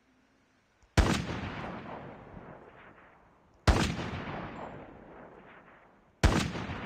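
A sniper rifle fires loud single shots that echo and slowly fade.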